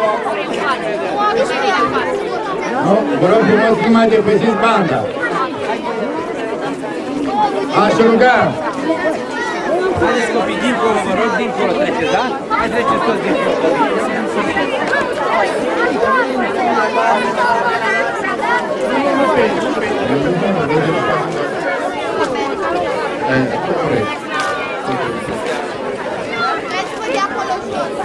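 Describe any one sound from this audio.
An elderly man speaks calmly through a microphone and loudspeakers outdoors.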